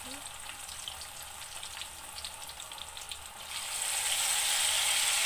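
Hot oil sizzles and crackles in a pan.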